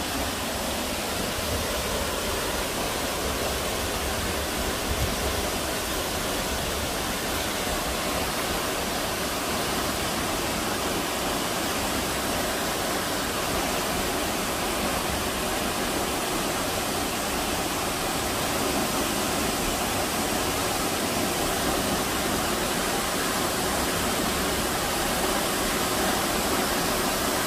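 A waterfall roars steadily into a pool, growing louder as it comes closer.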